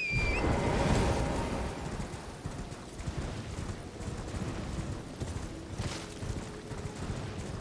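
A horse's hooves thud rapidly as it gallops.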